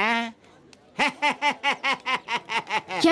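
A middle-aged man laughs in short bursts.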